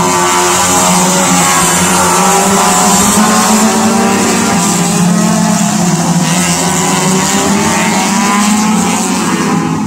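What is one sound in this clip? Racing car engines whine and roar at a distance as cars speed around a track.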